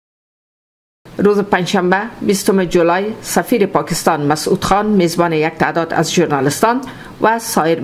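A woman speaks clearly and steadily, close to a microphone.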